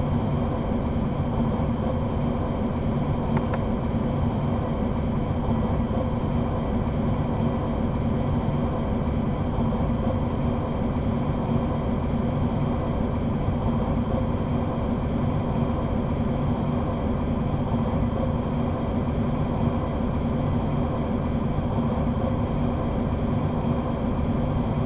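An electric train rumbles steadily along the tracks at speed.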